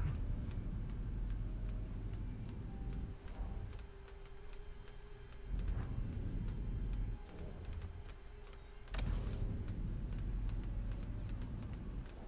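Ship engines roar and rumble loudly.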